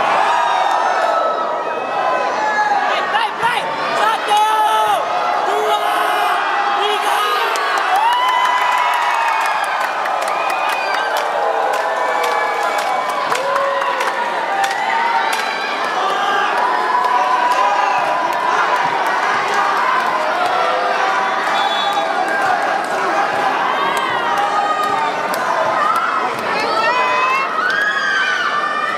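A volleyball smacks sharply off players' hands.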